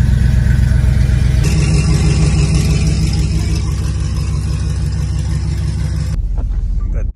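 A car engine rumbles deeply at idle.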